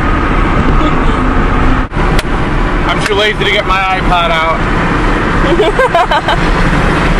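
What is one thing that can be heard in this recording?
A car engine hums and road noise rushes steadily from inside a moving car.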